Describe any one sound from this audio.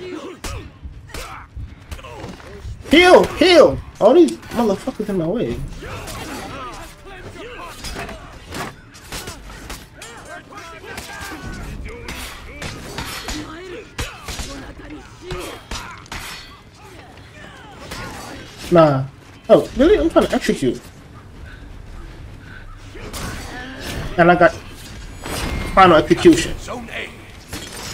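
Swords clash and clang repeatedly in a fight.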